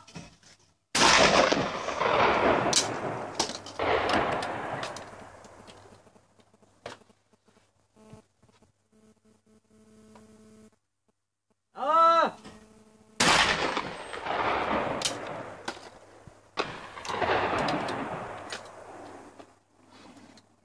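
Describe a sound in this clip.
A shotgun fires twice, with each blast echoing loudly across the water.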